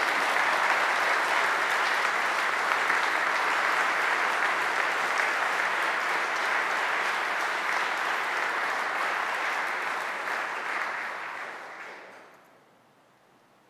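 A crowd applauds loudly in a large echoing hall, then the applause fades out.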